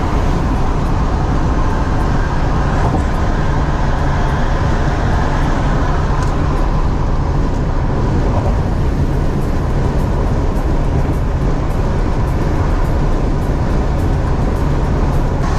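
A car drives fast along a highway with a steady rumble of tyres and wind.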